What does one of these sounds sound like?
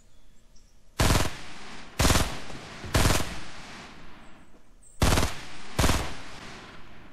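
Loud gunshots fire in short bursts.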